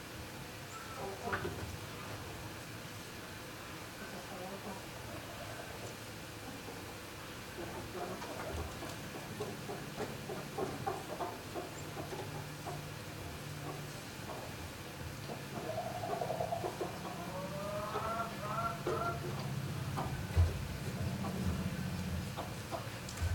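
Chickens scratch and rustle in dry straw.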